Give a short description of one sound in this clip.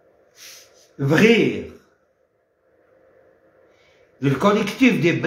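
A middle-aged man speaks emphatically, close to the microphone.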